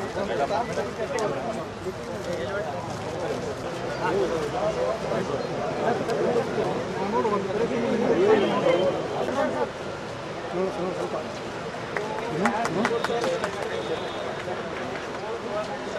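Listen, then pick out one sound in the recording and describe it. A crowd of men chatters and talks over one another nearby.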